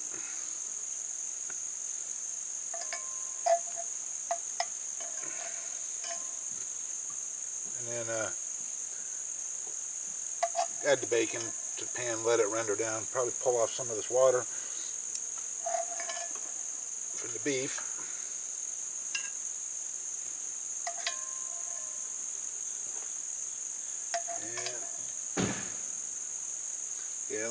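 Metal tongs clink against a cast iron pot and lid.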